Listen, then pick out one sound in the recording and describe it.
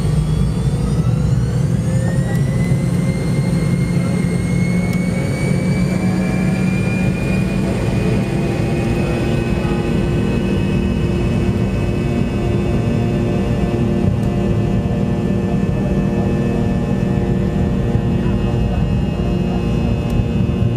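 Jet airliner engines whine and rise to take-off thrust, heard from inside the cabin.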